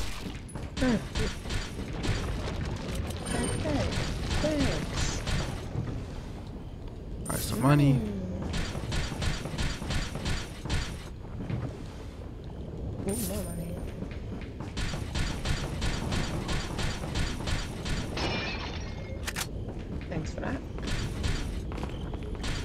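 Footsteps tread quickly across a hard floor.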